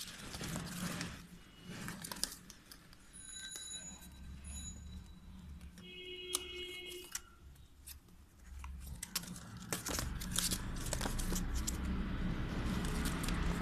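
Kittens scuffle and scrabble with their claws on cardboard inside a plastic crate.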